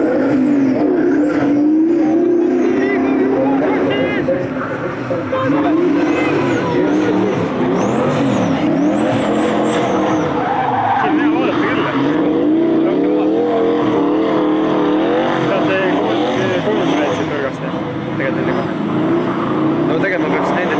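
A car engine revs hard and roars up and down in pitch.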